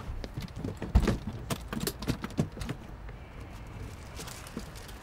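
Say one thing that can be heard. Metal latches on a case click open.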